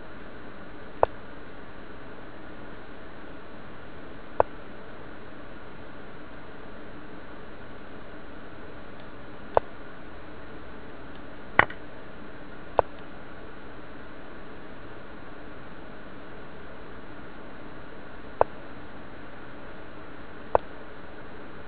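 A short sharp click sounds with each chess move.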